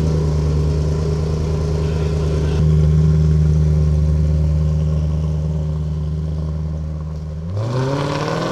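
A car engine idles with a deep, loud rumble.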